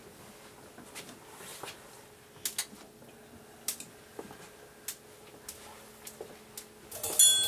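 Percussion is tapped with sharp, sparse clicks.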